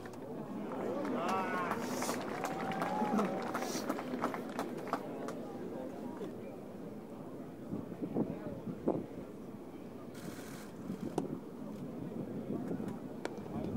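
A large crowd murmurs outdoors.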